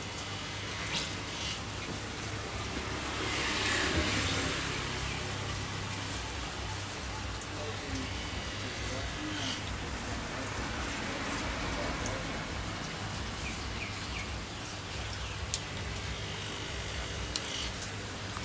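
A knife blade taps against a wooden chopping block.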